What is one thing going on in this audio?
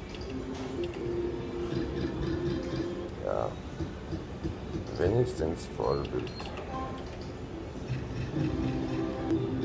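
A slot machine plays electronic jingles and chiming tones.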